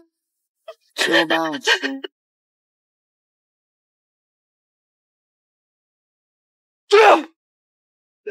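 A young man shouts loudly and angrily.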